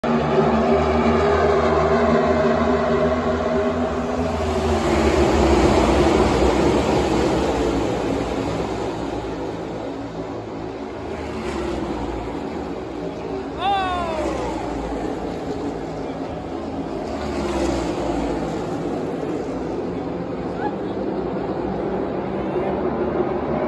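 Many race car engines roar loudly as a pack speeds past.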